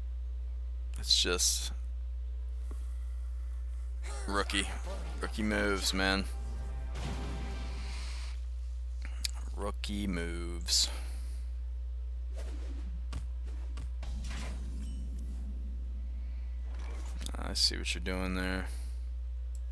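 Game effects chime and whoosh as cards are played.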